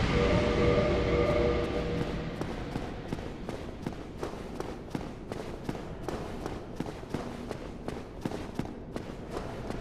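Armoured footsteps clack quickly on a stone floor.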